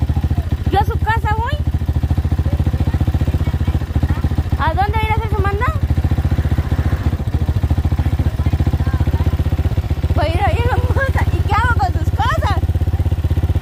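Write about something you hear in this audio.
An elderly woman speaks loudly outdoors, a few steps away.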